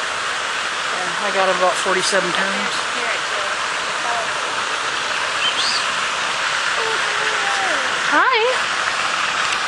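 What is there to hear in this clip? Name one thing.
A parrot chirps and whistles in short calls nearby.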